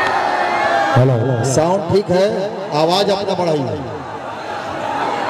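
A man speaks into a microphone through a loudspeaker.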